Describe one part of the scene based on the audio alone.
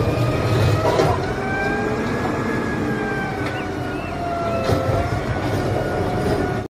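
A garbage truck engine idles and hums loudly.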